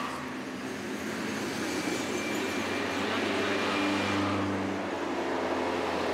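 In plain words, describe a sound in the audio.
A truck engine rumbles by.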